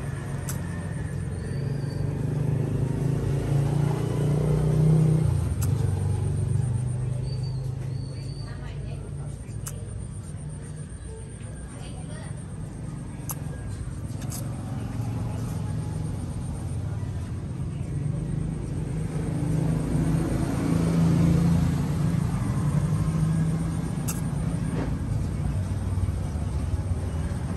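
A baby macaque sucks milk from a bottle.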